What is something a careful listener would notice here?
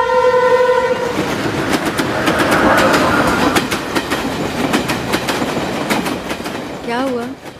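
A passing train rattles and clatters along the tracks.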